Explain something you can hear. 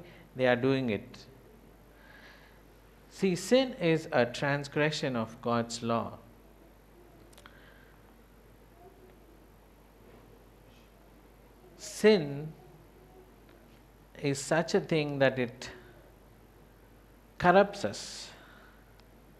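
A man speaks calmly into a microphone, in short phrases with long pauses.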